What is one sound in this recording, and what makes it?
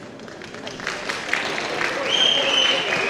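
An audience cheers and whistles loudly.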